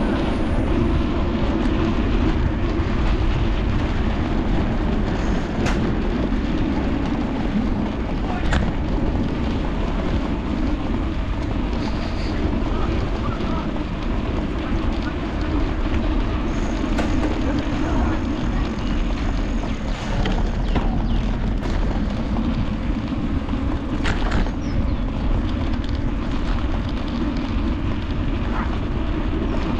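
Bicycle wheels whir and rattle over paving.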